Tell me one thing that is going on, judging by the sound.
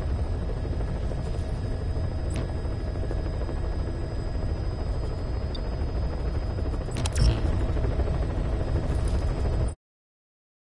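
A helicopter engine drones in a steady low rumble from inside the cabin.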